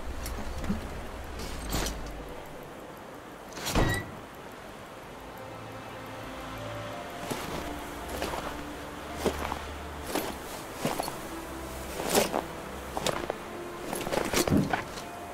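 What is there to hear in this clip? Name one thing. A heavy vehicle's engine rumbles low.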